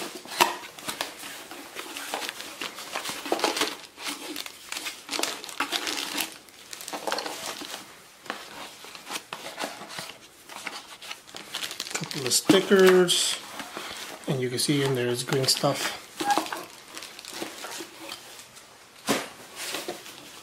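Paper and cardboard rustle and crinkle close by as a box is handled.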